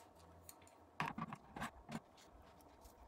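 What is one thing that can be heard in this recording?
A small metal part clatters and taps as it is picked up.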